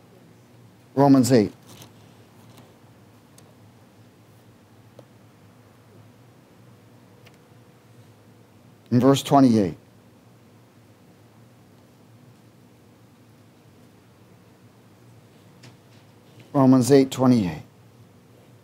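A man speaks slowly into a microphone in short, spaced phrases.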